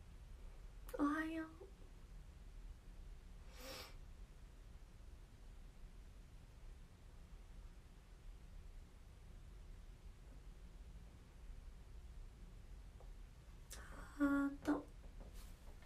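A young woman speaks softly close by, in short bursts.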